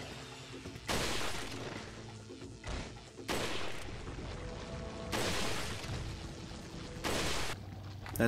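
A rifle fires several single shots.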